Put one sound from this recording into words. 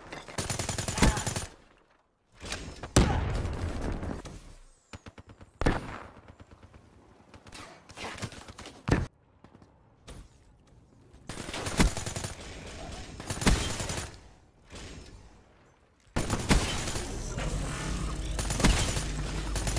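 Sharp rifle shots ring out one at a time, with loud echoing bangs.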